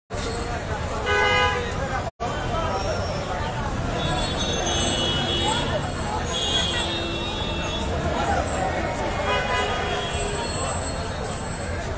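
A crowd of men talks and murmurs nearby outdoors.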